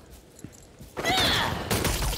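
Blades slash and clash in a fight.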